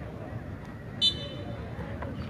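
A referee's whistle blows once, sharply.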